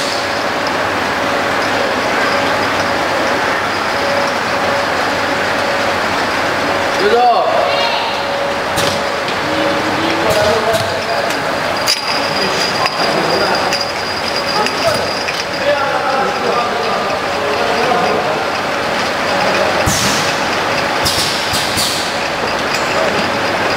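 Filling nozzles hiss with air as they rise and fall.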